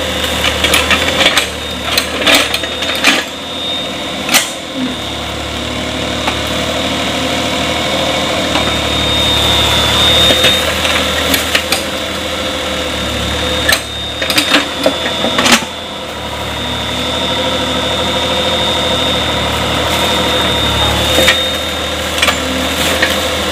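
Mud and clods thud and splash as an excavator bucket digs into a shallow creek.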